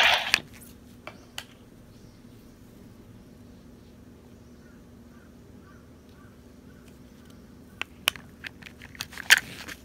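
A plastic medal clicks into a toy device.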